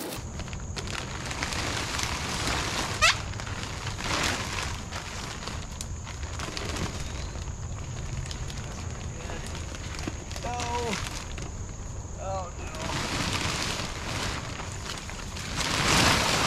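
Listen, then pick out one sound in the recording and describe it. Plastic sheeting rustles and crinkles as it is pulled and handled.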